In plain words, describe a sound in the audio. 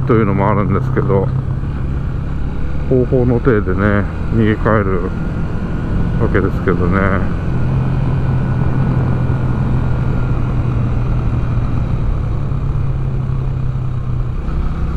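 A motorcycle engine hums steadily at a low pitch.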